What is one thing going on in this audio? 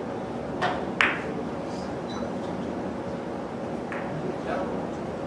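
Billiard balls click against each other and thud off the cushions.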